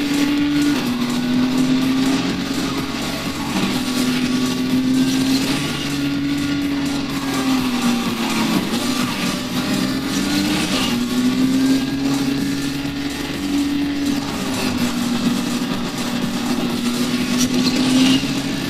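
Tyres screech while a car drifts around bends.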